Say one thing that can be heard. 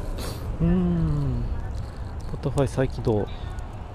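A van drives past on a road nearby.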